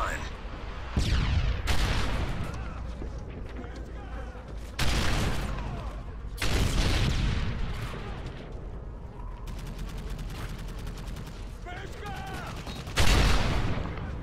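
A rifle fires loud bursts of gunshots.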